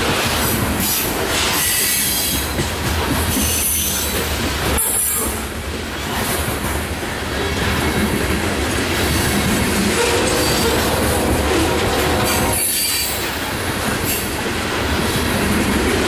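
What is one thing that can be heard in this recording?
Steel wheels clack over rail joints as freight cars roll by.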